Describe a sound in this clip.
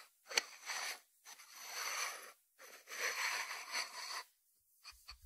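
A ceramic lid grinds and scrapes as fingers twist it on a ceramic dish.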